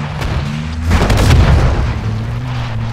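A car crashes and bangs against rocks.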